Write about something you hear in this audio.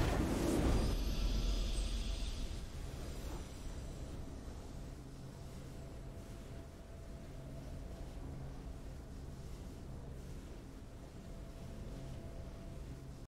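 A triumphant game fanfare bursts out and slowly fades into soft, steady music.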